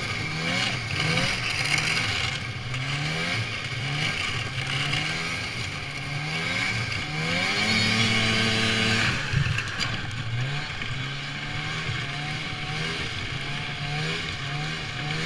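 A snowmobile engine drones and revs up and down close by.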